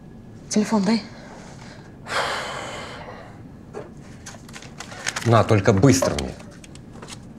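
A man speaks quietly up close.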